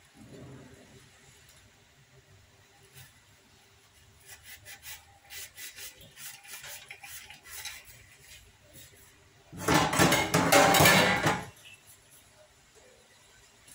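Metal pots and lids clatter and clink against each other in a steel sink.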